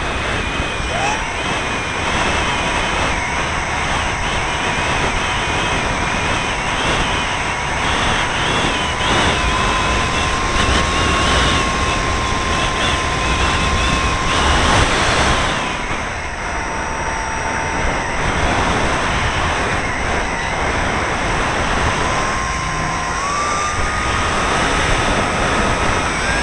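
A small model aircraft motor whines at a steady high pitch, shifting slightly.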